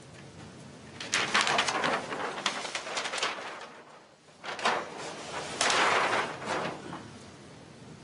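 Large sheets of paper rustle and flap as they are flipped over.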